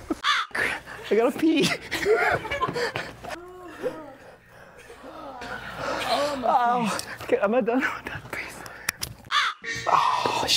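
A young man groans and cries out in pain.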